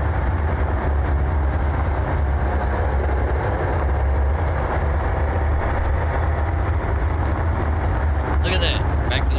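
A pickup truck engine rumbles steadily as it drives.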